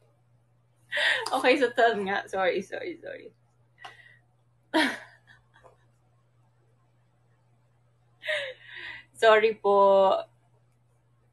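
A young woman laughs heartily.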